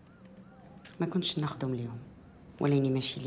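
A young woman speaks quietly and flatly.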